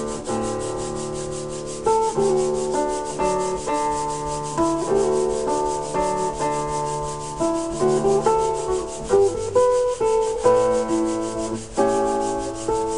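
A bowed string instrument plays a melody of sustained notes.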